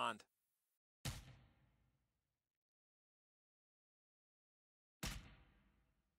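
Punches land with dull thuds.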